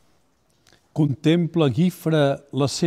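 An elderly man reads aloud calmly and close to a microphone.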